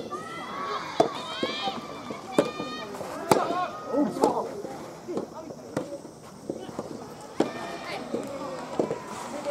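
A tennis ball pops off rackets in a rally.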